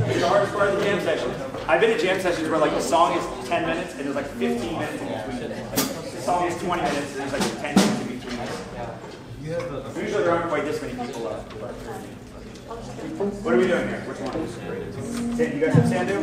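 A piano plays chords along with the band.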